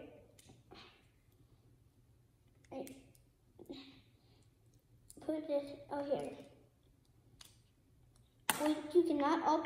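Small plastic toy pieces click together.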